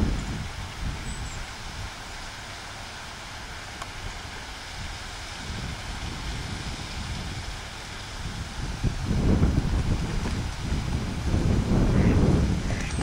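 Wind rumbles and gusts outdoors.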